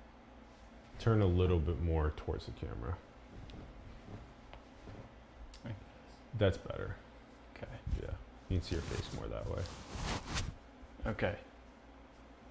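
A second man answers calmly close by.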